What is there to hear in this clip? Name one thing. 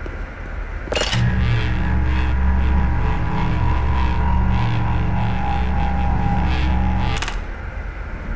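An electric charger hums steadily, then cuts off.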